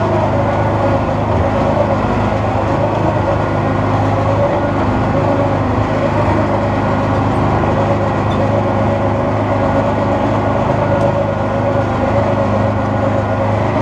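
Tyres crunch over loose rocks.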